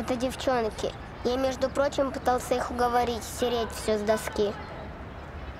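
A young boy talks nearby.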